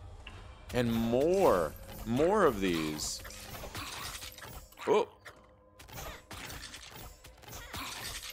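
Blades swish and strike in a fight.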